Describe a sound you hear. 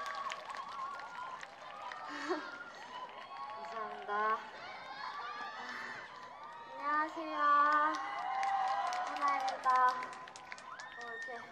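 A young woman sings through a microphone over loudspeakers.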